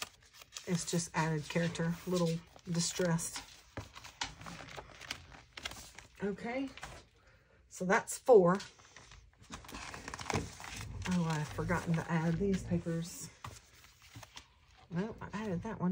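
Paper rustles and shuffles as sheets are handled.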